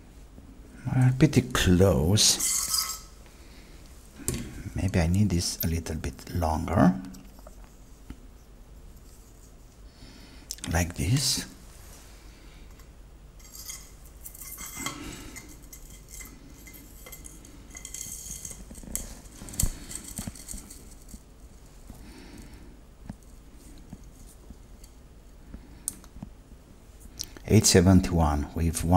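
A man speaks calmly and closely into a microphone, in short bursts.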